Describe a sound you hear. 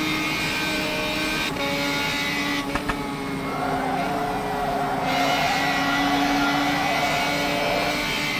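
A racing car engine drones steadily, its pitch shifting as it changes gear.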